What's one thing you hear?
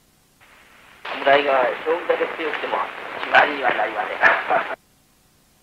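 A man speaks calmly, heard through a muffled old recording.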